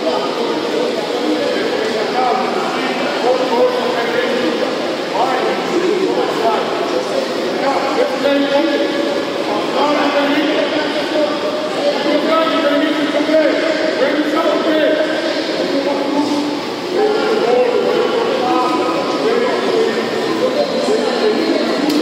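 A man speaks urgently to a group of players in an echoing hall.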